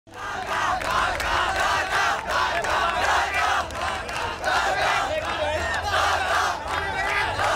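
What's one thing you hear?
A large crowd of young men chants and cheers loudly in rhythm.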